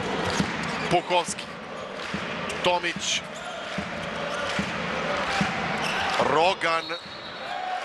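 A referee blows a whistle in short, sharp blasts.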